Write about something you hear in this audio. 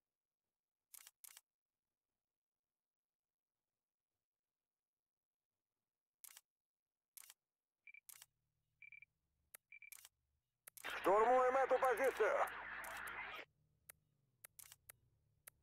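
Short soft clicks sound as menu options are selected.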